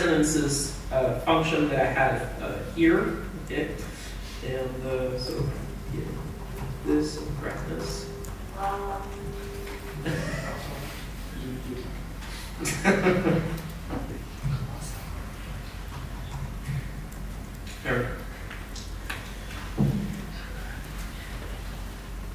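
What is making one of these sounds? A man speaks calmly through a microphone in a large, echoing hall.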